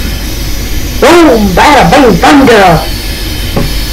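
A train horn blares loudly in several short blasts.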